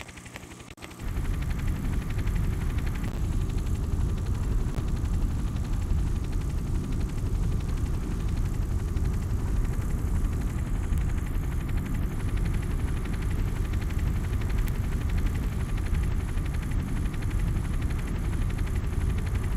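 A helicopter's rotor thuds and roars steadily.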